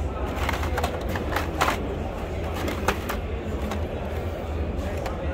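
Plastic packaging crinkles and rattles as a hand sorts through it.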